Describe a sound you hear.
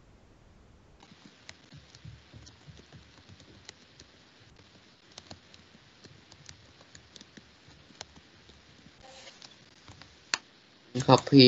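Keys on a keyboard click in quick, light taps.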